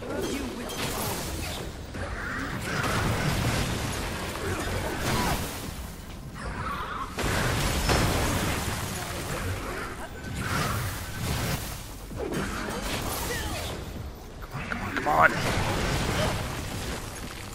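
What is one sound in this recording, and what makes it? A heavy creature stomps and crashes its fists down.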